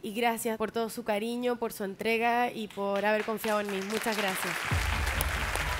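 A woman speaks emotionally into a microphone, her voice wavering.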